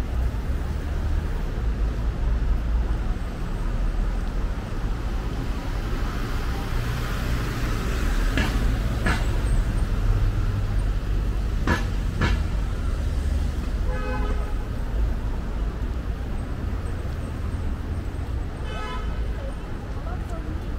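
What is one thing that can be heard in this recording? City traffic rumbles steadily on a nearby road.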